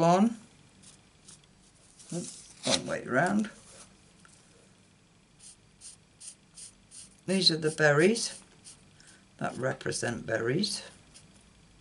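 A marker pen taps and scratches lightly on paper.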